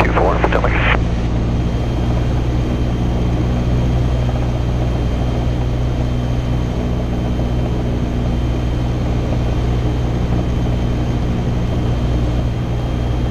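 Wind rushes past the cabin of a small plane.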